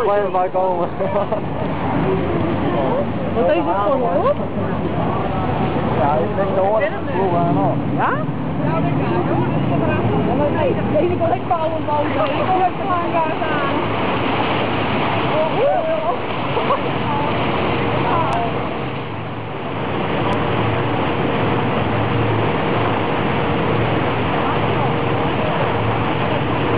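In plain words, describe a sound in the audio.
A boat's motor rumbles steadily nearby.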